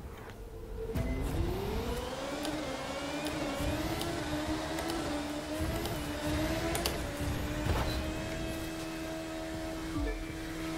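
A racing car engine whines and climbs steadily in pitch as it speeds up.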